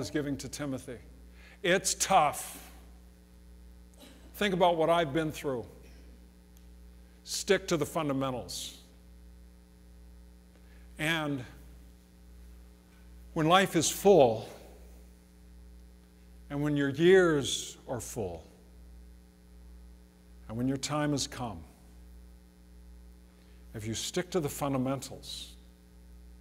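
A middle-aged man preaches through a microphone in short, emphatic phrases with pauses, in a room with some echo.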